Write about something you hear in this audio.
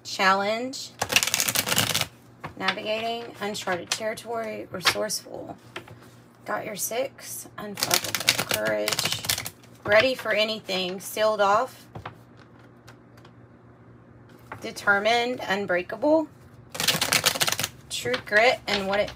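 A deck of cards is shuffled and riffled in quick bursts.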